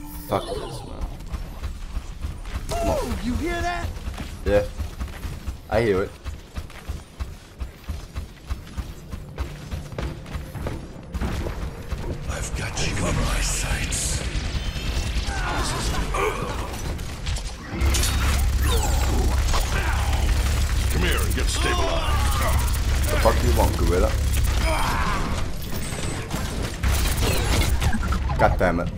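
A young man talks with animation close to a headset microphone.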